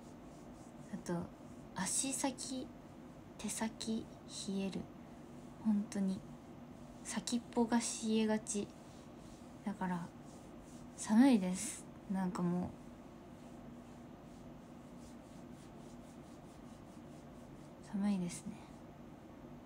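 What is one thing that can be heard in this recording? A young woman speaks softly and calmly, close to the microphone, with long pauses.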